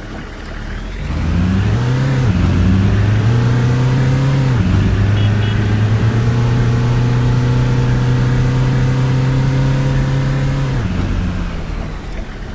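A bus engine revs up through its gears and then eases off.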